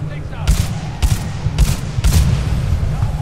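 Gunshots fire in quick bursts, echoing in a large hall.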